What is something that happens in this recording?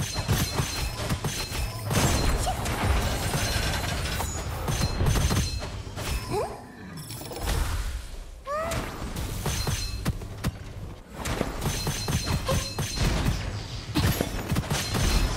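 A video game weapon fires rapid energy blasts.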